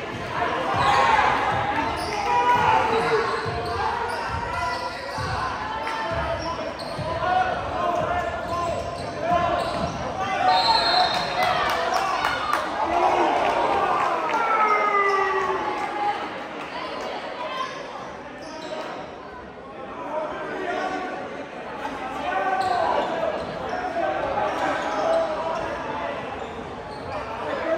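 A crowd of spectators chatters throughout in a large echoing gym.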